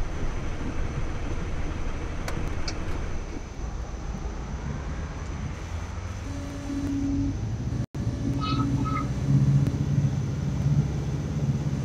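An armoured vehicle's engine rumbles low and steadily.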